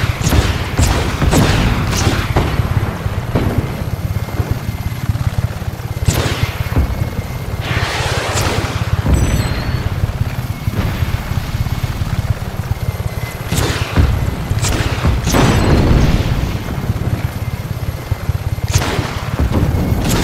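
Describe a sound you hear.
Rockets whoosh away in quick bursts.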